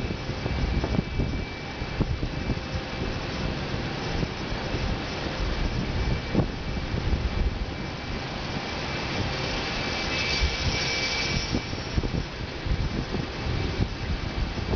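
A jet airliner's engines roar steadily as it taxis.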